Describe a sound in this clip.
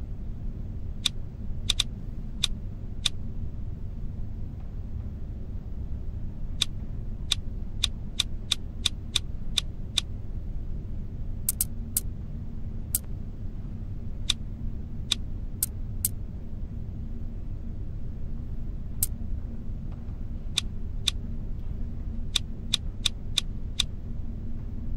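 Short, sharp clicks sound again and again as game stones move into place.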